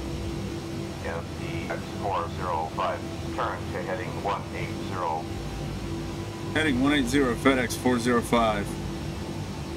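A man talks calmly close to a microphone.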